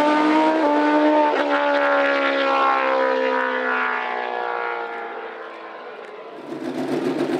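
Two racing motorcycle engines roar loudly down a track and fade into the distance.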